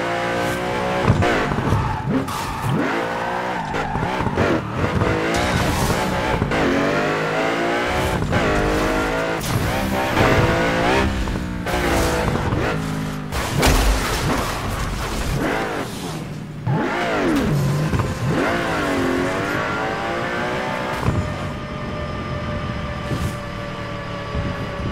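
A racing car engine roars and revs up and down at high speed.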